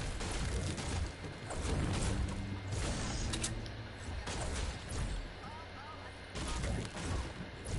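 A pickaxe strikes wood again and again.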